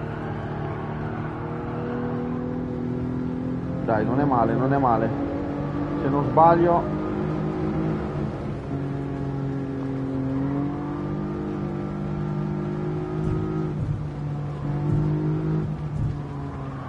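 A racing car engine drones steadily, shifting pitch as it speeds up.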